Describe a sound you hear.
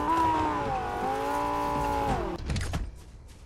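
A car engine hums steadily, then drops away.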